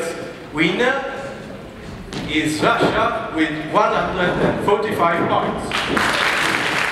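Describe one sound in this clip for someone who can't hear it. A man announces with animation through a loudspeaker in a large echoing hall.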